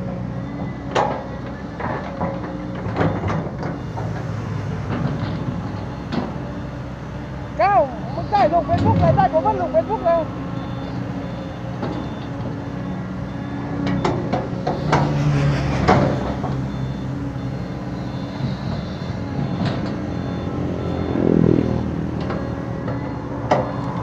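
An excavator's metal bucket clanks and scrapes against dirt.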